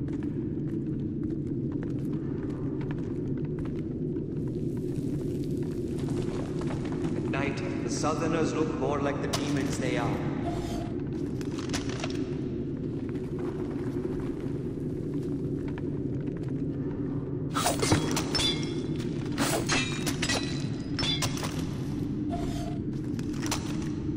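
Footsteps thud on stone steps.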